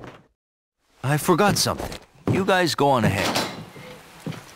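A man speaks sharply.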